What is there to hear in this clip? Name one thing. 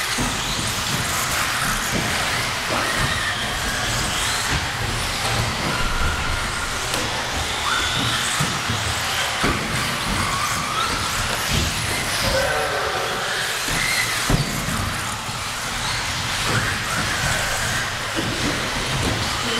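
Small electric motors of remote-control cars whine as the cars race around a track.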